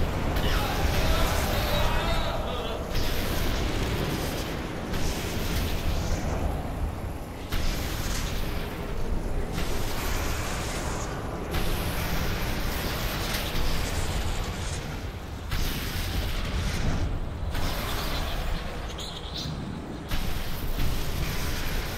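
Fires roar and crackle.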